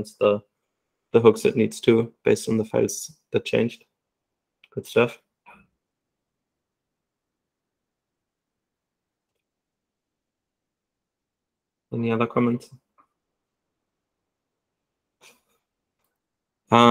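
A young man speaks calmly through an online call, pausing between phrases.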